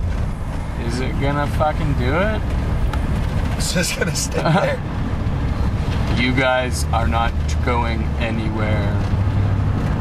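A man talks close by.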